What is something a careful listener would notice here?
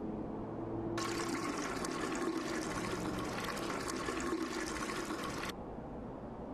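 Fuel pours from a can into a tank.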